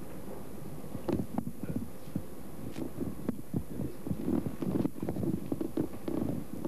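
Footsteps shuffle across the floor.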